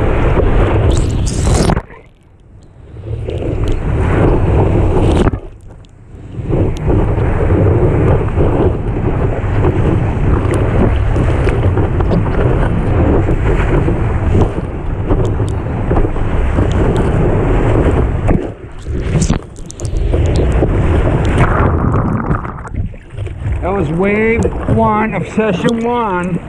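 Water rushes and splashes loudly close by.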